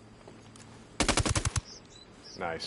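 A suppressed rifle fires a rapid burst.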